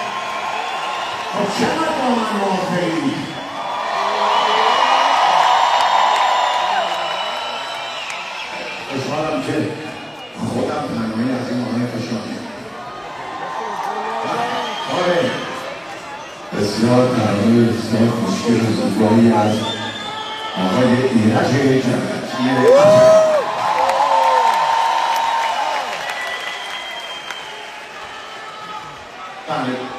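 A man sings into a microphone through loud speakers in a large echoing hall.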